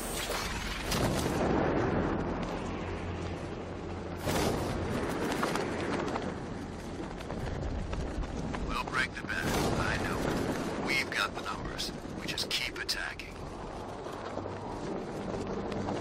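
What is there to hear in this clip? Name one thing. Wind rushes steadily past while gliding high through the air.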